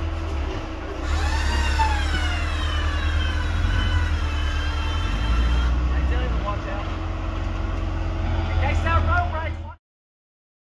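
An off-road vehicle's engine revs up and down.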